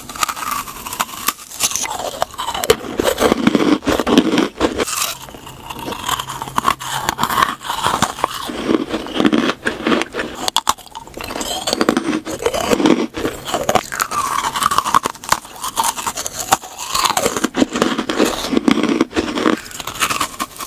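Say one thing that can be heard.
A woman bites into soft sweets close to a microphone.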